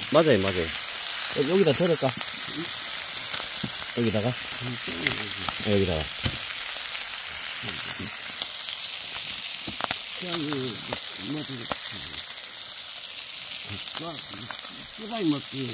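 Pork sizzles and crackles in a hot frying pan.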